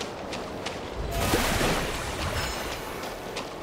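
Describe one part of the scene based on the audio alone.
A magical burst whooshes and sparkles.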